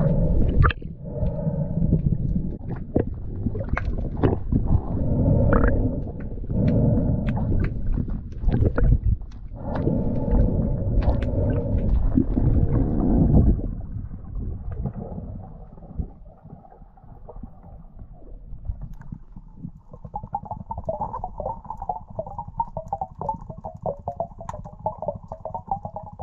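Water rushes and bubbles around a diver moving underwater.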